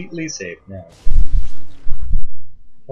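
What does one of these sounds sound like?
An electric beam crackles and buzzes.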